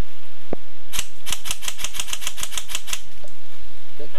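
An airsoft rifle fires a rapid burst of sharp clicks.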